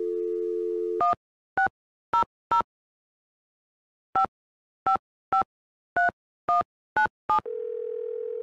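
Phone keypad tones beep one after another as a number is dialled.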